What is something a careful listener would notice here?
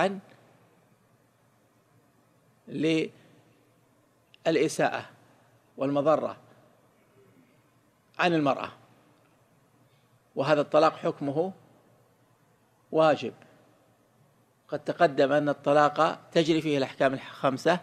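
A man speaks slowly and calmly into a microphone, with long pauses.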